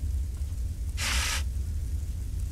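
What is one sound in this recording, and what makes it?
A fire extinguisher sprays with a short hiss.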